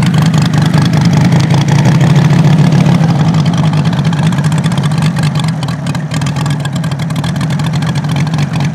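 A model plane's engine drones loudly and steadily close by.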